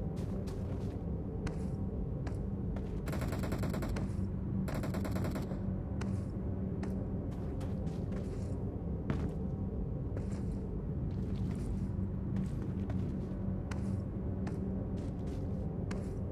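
Footsteps run quickly over snow and grass.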